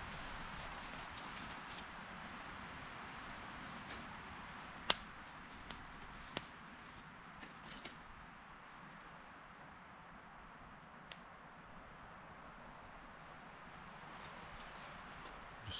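Foil crinkles and rustles under hands.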